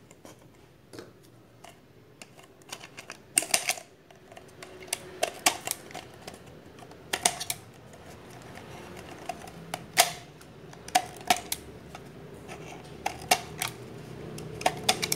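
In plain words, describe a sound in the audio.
A thin plastic bottle crinkles and crackles in a hand.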